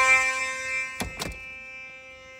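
A door bangs shut.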